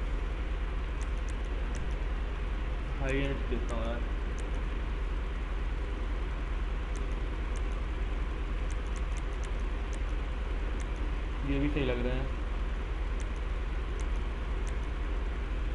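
Short soft clicks tick one after another.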